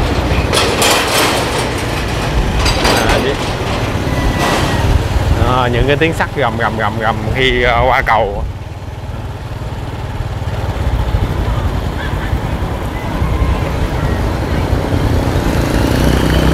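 A motorbike engine hums close by.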